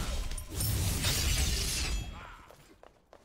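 A fiery spell roars and crackles loudly.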